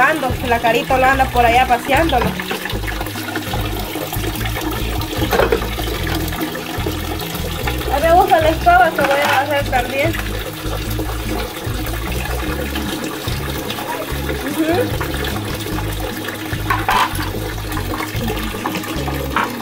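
Water splashes as dishes are rinsed.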